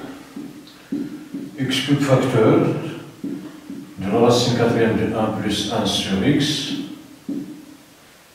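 A man speaks calmly nearby, as if teaching.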